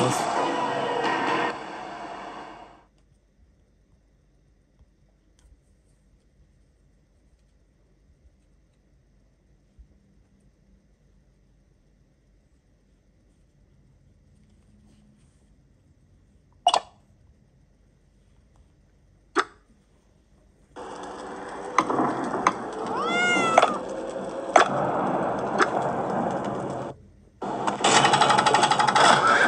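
Game music and sound effects play from a tablet's speaker.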